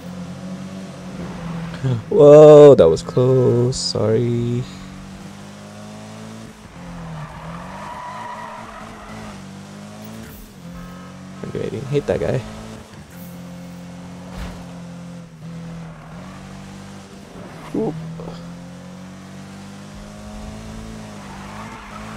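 A car engine roars and revs steadily.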